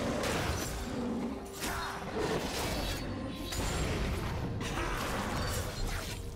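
Magic spells burst and whoosh in quick bursts.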